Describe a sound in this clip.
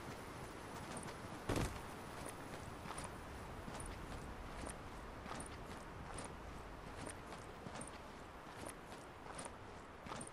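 Soft footsteps rustle steadily through grass.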